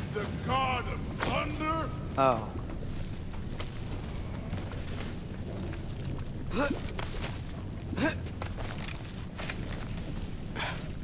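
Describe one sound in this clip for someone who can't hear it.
A climber's hands scrape on rough rock.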